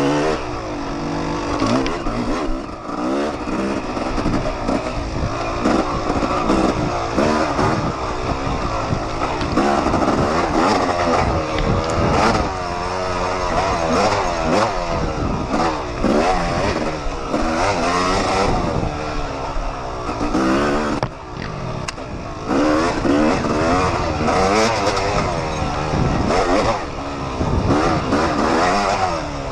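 A dirt bike engine revs loudly up close, rising and falling as it speeds along.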